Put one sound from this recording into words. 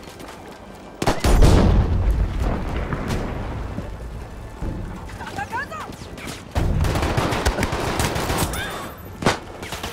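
Explosions rumble and boom nearby.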